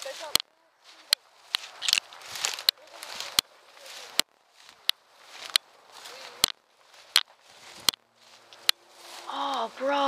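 Dry grass rustles and crackles as someone pushes through it.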